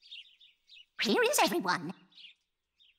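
An elderly woman exclaims in a cartoon voice.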